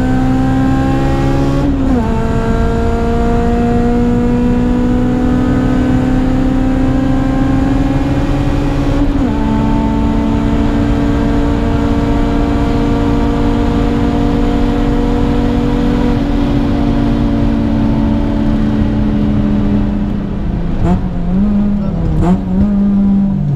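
A car engine roars loudly from inside the cabin, climbing in pitch through each gear and dropping sharply at gear changes.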